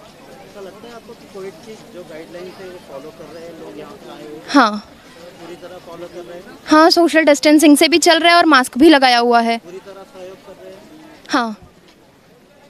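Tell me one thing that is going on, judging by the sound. A young woman speaks calmly into a microphone close by.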